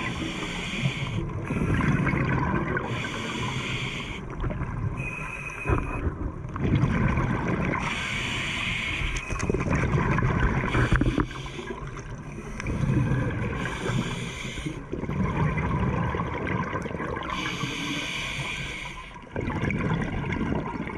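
A diver breathes through a regulator underwater, with bubbles gurgling out in bursts.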